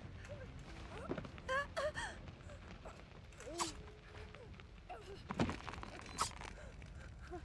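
A woman cries out and groans in pain, close by.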